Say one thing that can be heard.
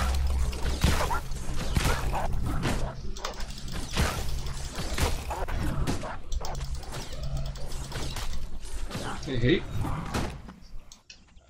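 Sword blows strike with sharp, heavy thuds.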